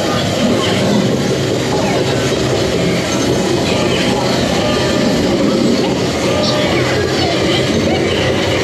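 Loud music plays through loudspeakers.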